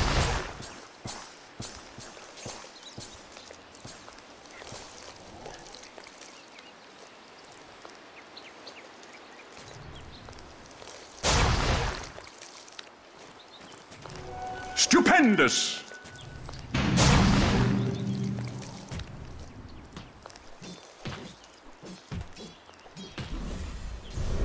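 Game sound effects of clashing blows and spells ring out in short bursts.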